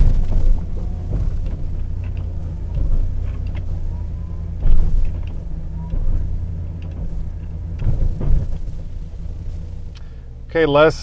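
A hydraulic plow blade whines and clunks as it swings side to side.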